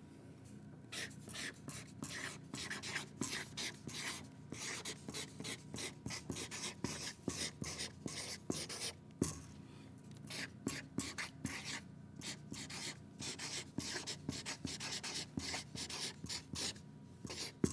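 A felt marker squeaks and scratches across paper in short strokes.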